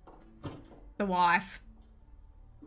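A woman gasps in surprise.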